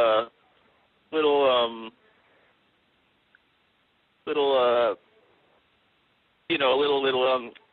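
A woman speaks calmly in short phrases through a microphone, with pauses between them.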